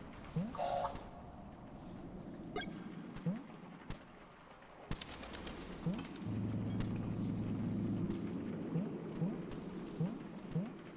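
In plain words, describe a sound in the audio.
Short rising video game blips sound as a small character hops about.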